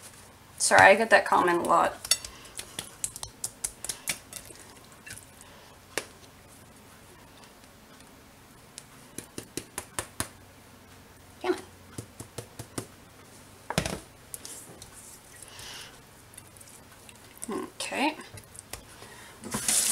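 Hands rub and pat raw chicken skin.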